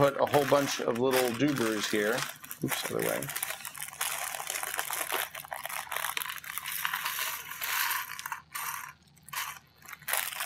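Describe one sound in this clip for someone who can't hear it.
Small plastic bricks click and snap together in someone's hands.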